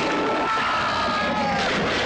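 An elderly man screams loudly.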